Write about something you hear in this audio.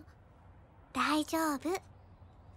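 A young girl speaks softly and reassuringly.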